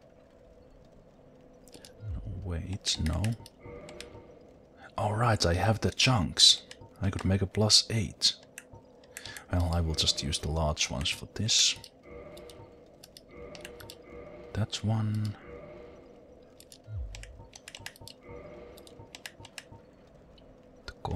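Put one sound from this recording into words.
Short game menu clicks sound as options are picked.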